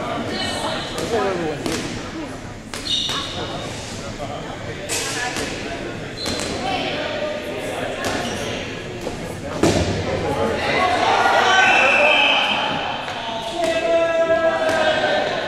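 Rubber balls bounce and thud on a wooden floor.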